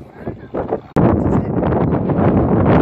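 Flags flap in the wind.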